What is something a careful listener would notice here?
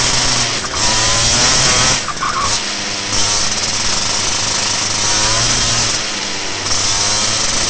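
A kart engine buzzes loudly close by, its pitch rising and falling with the throttle.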